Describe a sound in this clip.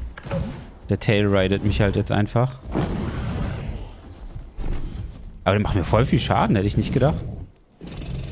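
A large creature roars and growls close by.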